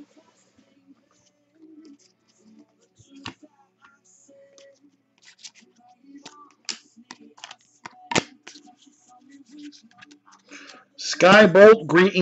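Trading cards click and rustle as they are shuffled by hand.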